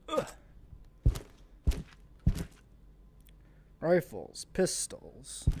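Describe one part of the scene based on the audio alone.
Small metal objects clunk down onto a wooden shelf.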